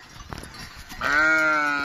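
A sheep bleats loudly close by.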